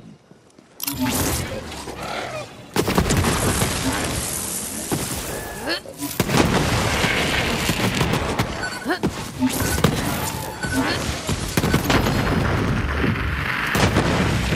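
Energy guns fire in rapid bursts with crackling impacts.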